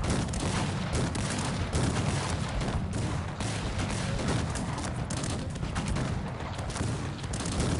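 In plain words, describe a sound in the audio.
Muskets and cannons fire in a busy battle.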